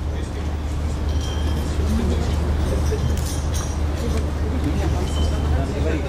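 A woman speaks through a microphone over loudspeakers.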